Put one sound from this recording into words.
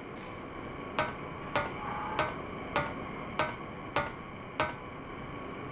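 Footsteps climb a ladder rung by rung.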